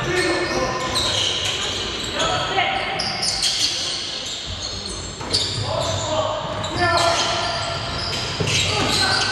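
Sneakers squeak sharply on a wooden court, echoing in a large hall.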